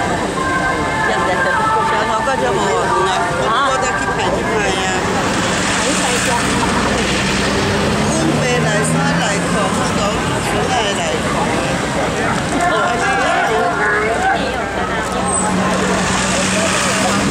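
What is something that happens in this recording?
A crowd of men and women chatter loudly nearby outdoors.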